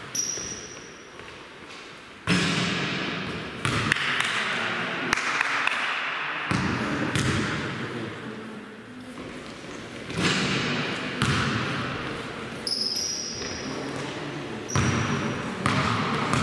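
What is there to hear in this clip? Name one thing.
A basketball bounces and thuds, echoing around a large hall.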